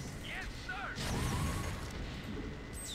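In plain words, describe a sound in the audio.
Heavy cannons boom and shells explode.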